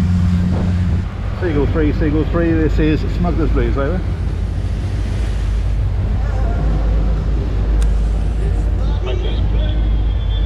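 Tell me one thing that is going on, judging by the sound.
Wind buffets loudly.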